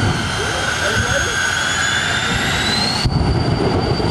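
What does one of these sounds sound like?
A race car engine screams loudly, rising in pitch.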